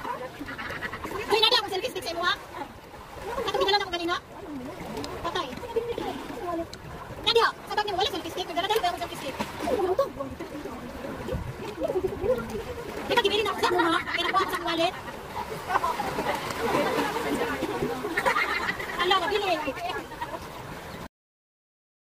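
Young women talk and laugh close by, outdoors.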